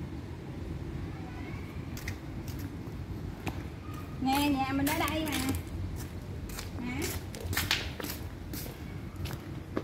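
Footsteps pad across a hard floor.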